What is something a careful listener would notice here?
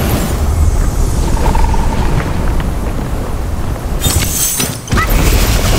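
A staff whooshes through the air in swings.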